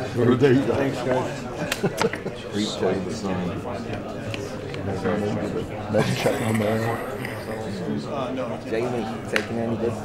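Several men and women chatter nearby in a room.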